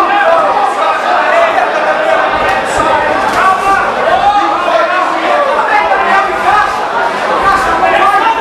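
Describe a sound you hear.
Boxing gloves thud against bodies in quick punches.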